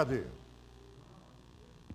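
A man speaks calmly into a microphone.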